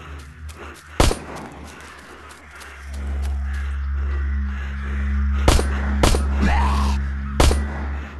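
A pistol fires loud single shots.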